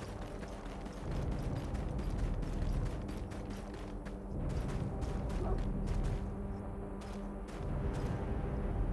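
Quick footsteps patter over grass and dirt.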